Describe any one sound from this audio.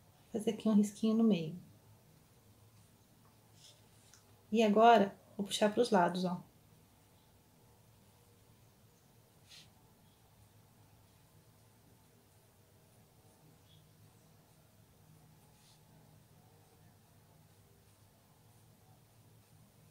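A paintbrush strokes softly across canvas.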